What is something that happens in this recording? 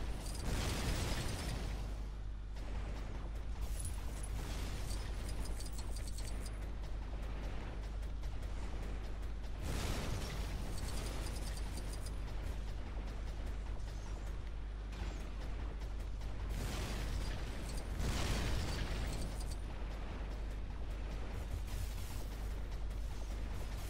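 Laser blasts zap rapidly.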